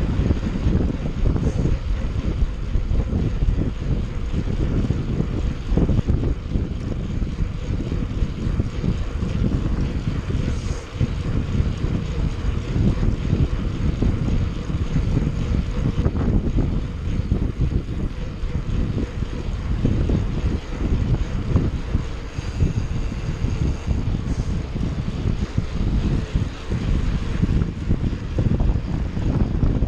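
Wind buffets loudly and steadily, outdoors.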